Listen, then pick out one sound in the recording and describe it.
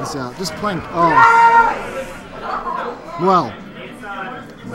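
Young men shout and cheer with excitement nearby.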